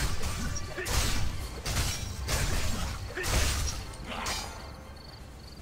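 Blades swish and clash in a fight.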